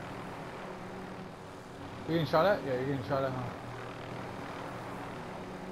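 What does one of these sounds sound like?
A helicopter's rotor drones steadily overhead.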